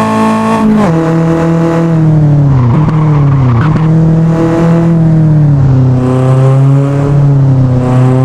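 A car engine roars loudly, its pitch stepping down several times.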